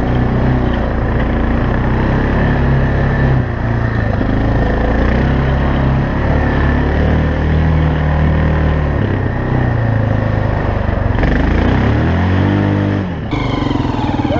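A quad bike engine drones and revs close by.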